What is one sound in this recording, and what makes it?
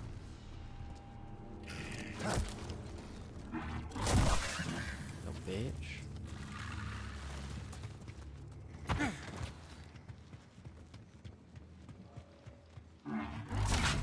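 A laser sword hums and buzzes.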